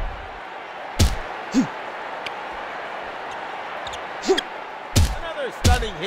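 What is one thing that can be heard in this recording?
Heavy punches thud against a body.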